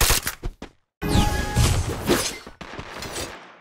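A wall of ice cracks up with a loud burst.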